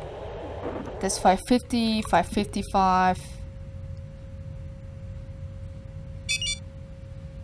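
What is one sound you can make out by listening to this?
Electronic bleeps and chirps sound in quick bursts.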